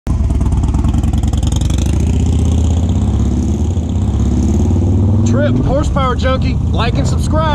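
A motorcycle engine rumbles loudly nearby and pulls away.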